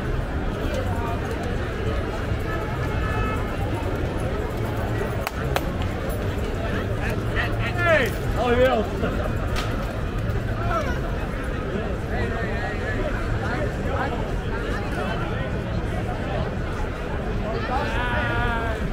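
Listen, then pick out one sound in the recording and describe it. Brass instruments play in a band.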